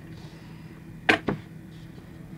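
A toy car is set down on a hard surface with a light click.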